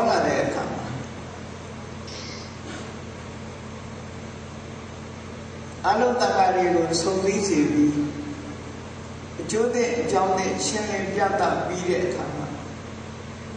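An elderly man speaks calmly through a microphone, in bursts with pauses.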